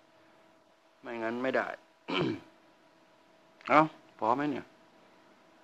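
An elderly man speaks calmly into a close microphone, in short phrases.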